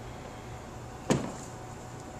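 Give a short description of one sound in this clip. A metal unit is set down on a table with a knock.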